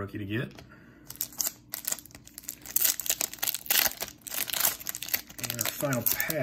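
A foil card wrapper crinkles and tears open.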